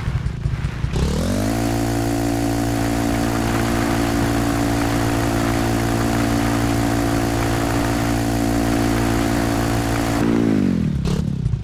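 Tyres skid and hiss on loose sand.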